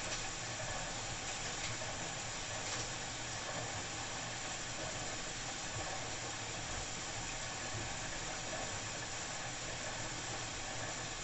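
A washing machine drum turns steadily with a low hum.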